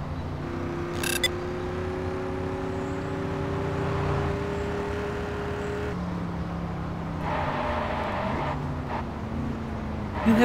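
Tyres roll on asphalt.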